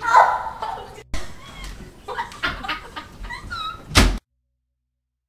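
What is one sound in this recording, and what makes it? A bed creaks and thumps as young women bounce on it.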